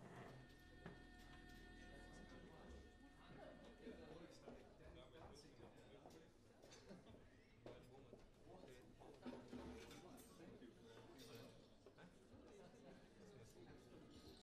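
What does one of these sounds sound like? Drums are tapped and struck lightly, now and then.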